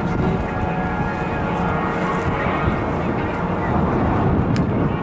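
Jet planes roar overhead in a steady loud rumble.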